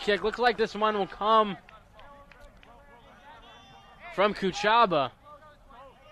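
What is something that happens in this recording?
Young men shout loudly across an open outdoor field.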